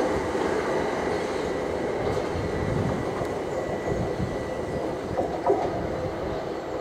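An electric train rolls slowly into a station with a steady rumble and whine.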